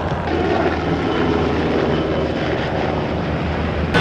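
A helicopter's rotor thumps as it flies past.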